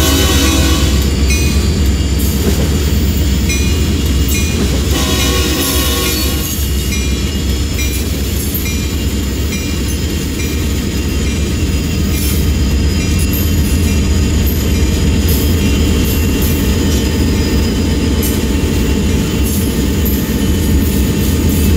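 Diesel locomotive engines rumble deeply and steadily close by.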